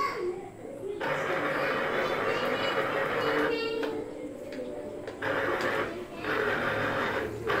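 An electric citrus juicer whirs in bursts.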